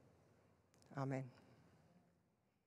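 A woman speaks briefly and calmly.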